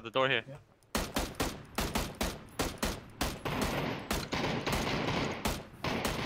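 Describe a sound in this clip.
A rifle fires in rapid bursts of gunshots.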